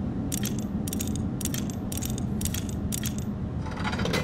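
Metal dials click as they turn, several times in quick succession.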